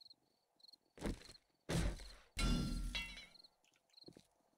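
A hammer bangs against a wooden door.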